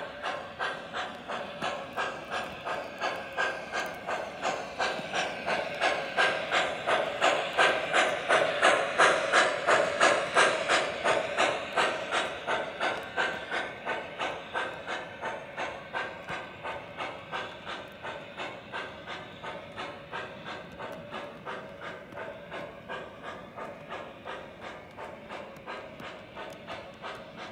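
Model train wheels click rhythmically over rail joints as cars roll past.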